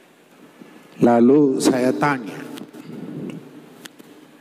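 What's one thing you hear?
An older man speaks loudly and with feeling into a microphone.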